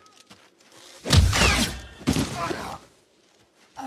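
A man crashes heavily into the snow.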